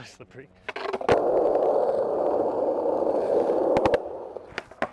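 Skateboard wheels roll loudly over rough pavement, coming close.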